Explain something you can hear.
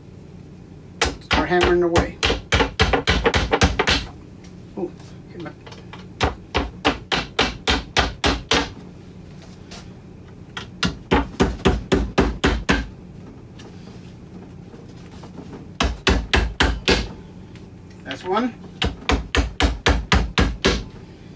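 A hammer taps rapidly on wood in bursts of quick blows.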